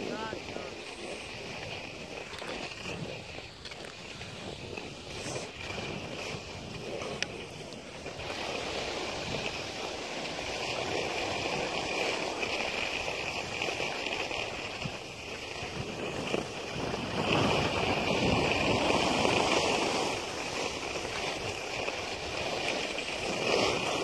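Skis hiss and scrape over packed snow.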